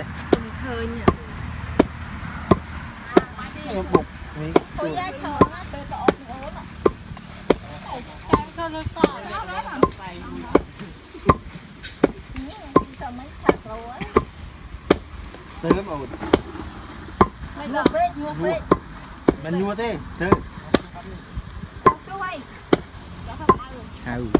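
A wooden pestle pounds grain in a steady rhythm of dull thuds.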